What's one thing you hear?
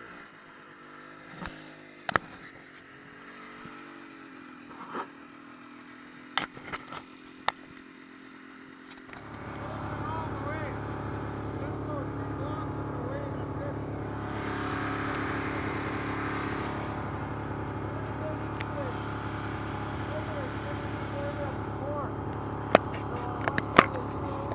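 A snowmobile engine idles, then revs up and roars steadily.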